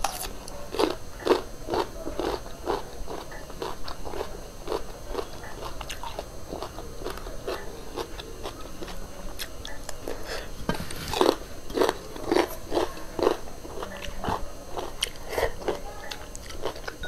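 A woman chews and crunches crisp food close to a microphone.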